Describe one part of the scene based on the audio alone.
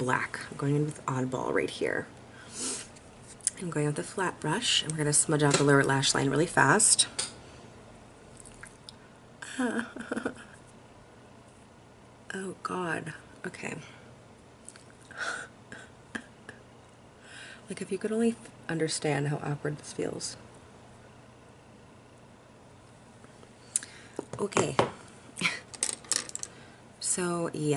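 A woman talks calmly and close by, with pauses.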